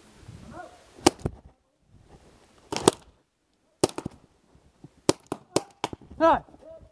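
A paintball marker fires sharp pops in short bursts.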